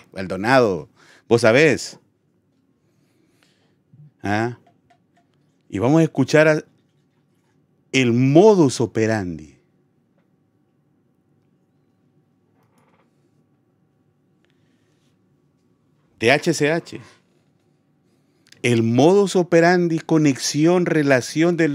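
A middle-aged man speaks with animation into a close microphone, pausing often.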